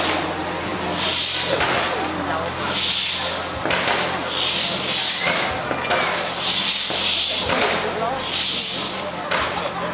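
Fireworks crackle and fizz in repeated bursts.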